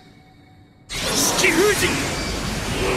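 A man shouts forcefully.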